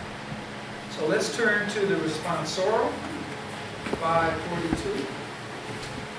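An elderly man speaks calmly into a microphone in an echoing room.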